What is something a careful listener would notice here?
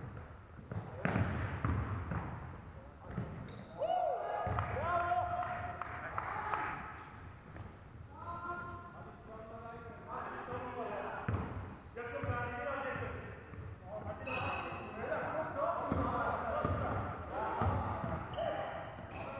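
Players shout to each other across the hall.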